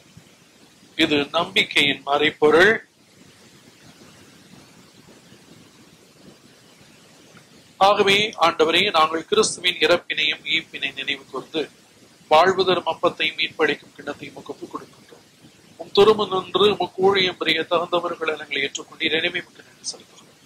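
An elderly man speaks and chants solemnly through a microphone, in a reverberant hall.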